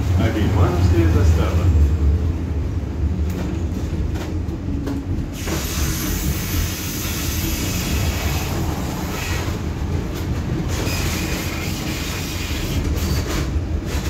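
A tram rumbles steadily along rails, heard from inside.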